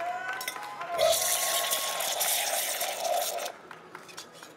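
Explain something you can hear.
An espresso machine's steam wand hisses loudly.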